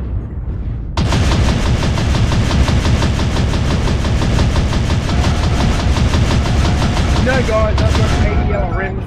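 Loud explosions roar and rumble in rapid bursts.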